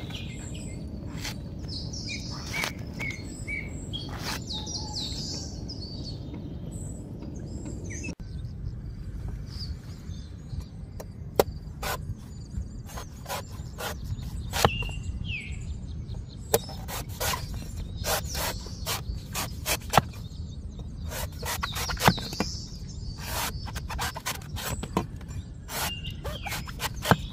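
A heavy knife chops into a coconut with sharp, repeated thuds.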